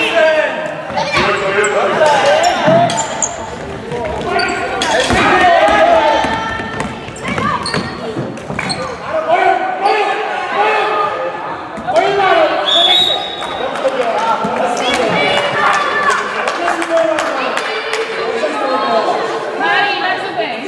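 Children shout and call out throughout in a large echoing hall.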